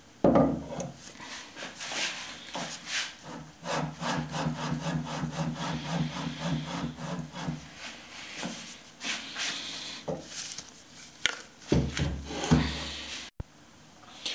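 Metal plates clink and scrape against each other as they are handled.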